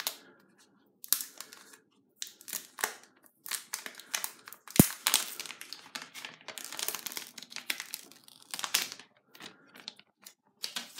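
Thin plastic film crinkles and rustles as it is peeled away.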